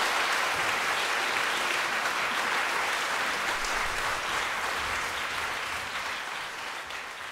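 An audience applauds steadily in a large echoing hall, slowly fading a little.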